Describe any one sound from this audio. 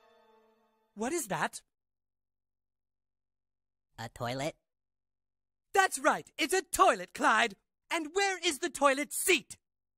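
A woman speaks sternly and loudly, close by.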